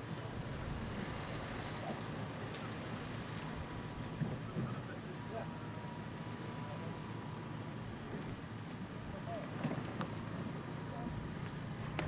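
Wind buffets outdoors with a steady low rumble.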